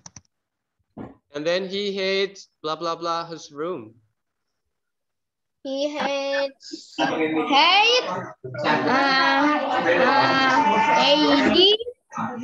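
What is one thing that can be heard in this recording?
A young child speaks in short bursts through an online call.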